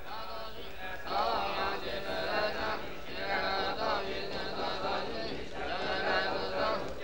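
A crowd of people murmurs in the background.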